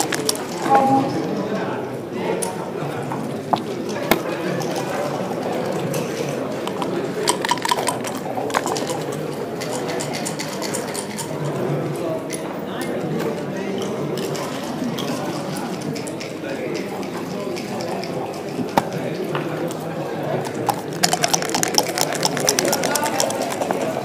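Game pieces click against each other and onto a board.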